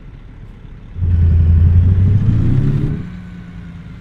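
A truck engine revs up loudly and then settles.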